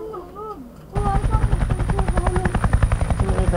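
Helicopter rotors thump loudly and rapidly.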